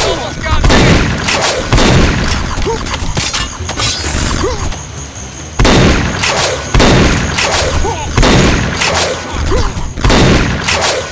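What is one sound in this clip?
Energy guns fire in rapid bursts with sharp zapping blasts.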